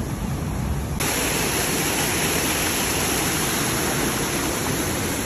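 A small waterfall splashes loudly.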